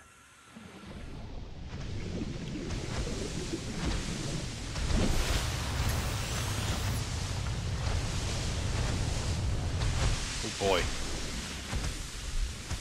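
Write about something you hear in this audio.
Water rumbles and bubbles steadily underwater.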